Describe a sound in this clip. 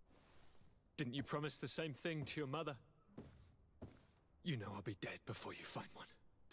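A young man speaks with a mocking tone, close by.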